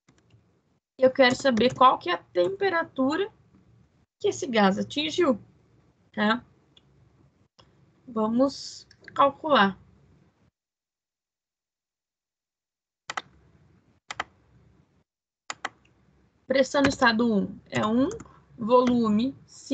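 A woman speaks calmly, explaining, heard through an online call.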